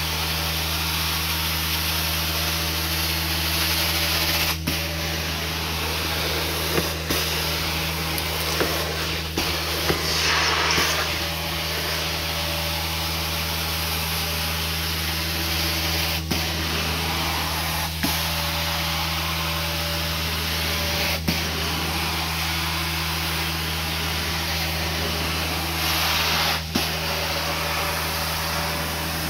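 A carpet extractor's wand sucks and hisses as it slides over carpet.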